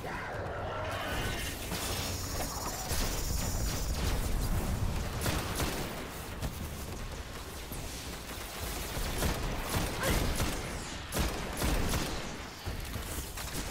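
Rapid gunfire rattles in bursts.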